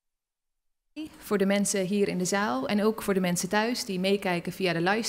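A woman speaks calmly into a microphone in a large room.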